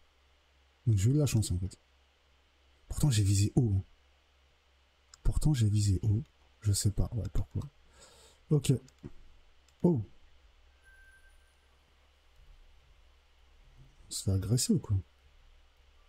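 A man talks into a close microphone with animation, in short bursts.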